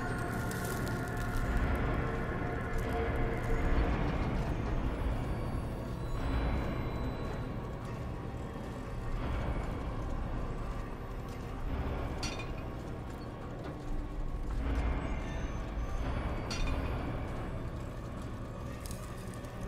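Heavy metal gears grind and rumble as a large mechanism turns.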